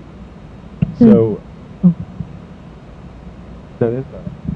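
A young man speaks in short bursts into a microphone over a loudspeaker.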